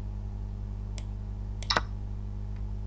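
A chess piece clicks as it is placed.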